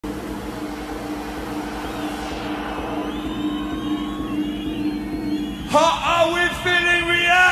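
Loud electronic music plays through a large concert sound system.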